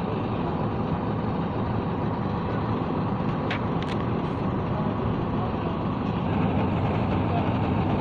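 A diesel engine runs with a steady loud rumble.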